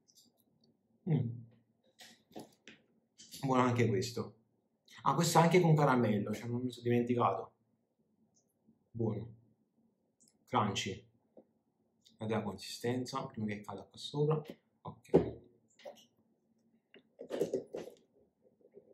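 A young man speaks calmly close by, in short bursts with pauses.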